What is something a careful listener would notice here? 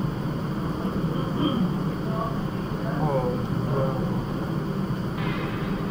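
A young man talks quietly close to a microphone.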